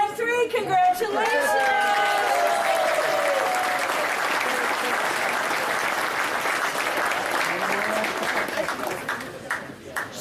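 A crowd claps and cheers loudly in a large room.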